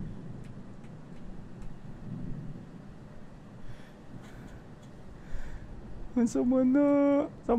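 A young man speaks quietly into a close microphone.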